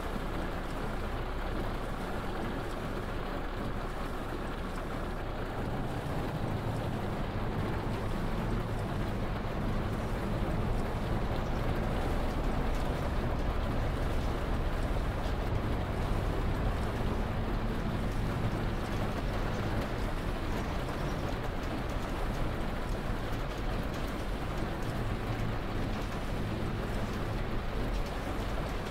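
A bus engine hums low and steadily.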